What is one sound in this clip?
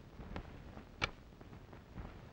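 A cassette player's button clicks.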